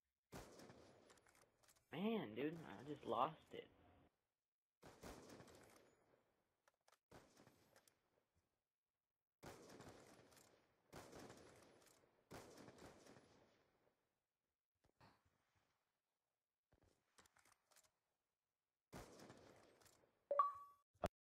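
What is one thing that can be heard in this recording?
Rifle shots crack out one by one.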